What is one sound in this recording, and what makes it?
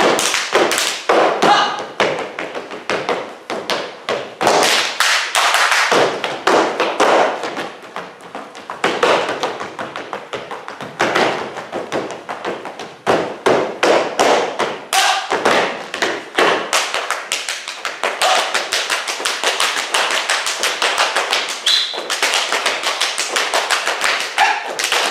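Shoes stamp and tap rhythmically on a wooden stage.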